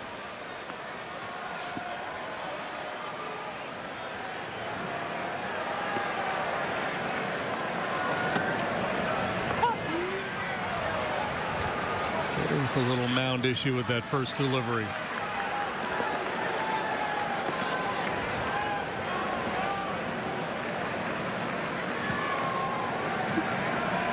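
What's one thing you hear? A stadium crowd murmurs steadily outdoors.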